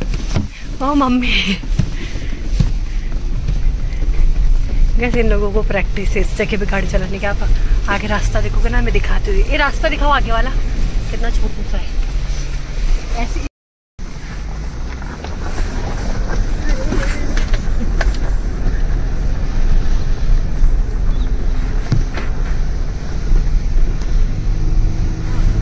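A car engine rumbles steadily.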